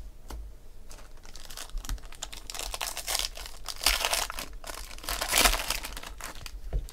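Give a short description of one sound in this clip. Foil wrapping crinkles and rustles as hands tear open a pack.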